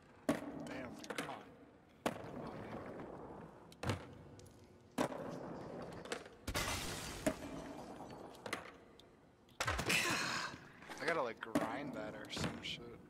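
Skateboard wheels roll on concrete.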